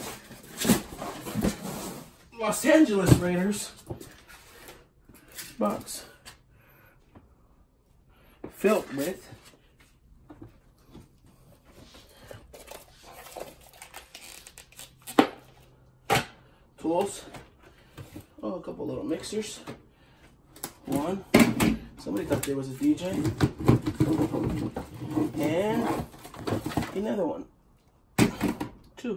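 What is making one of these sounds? Hard plastic gear knocks and clatters as it is handled.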